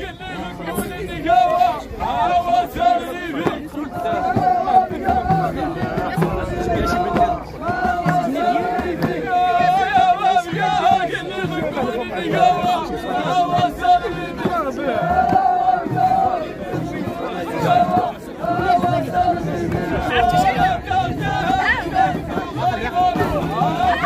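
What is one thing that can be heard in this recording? A group of men sings together loudly in chorus outdoors.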